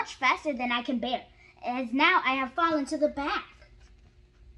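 A young girl reads aloud with animation close to a microphone.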